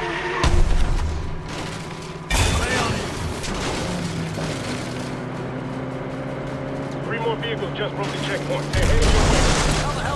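Tyres rumble and rattle over rough ground.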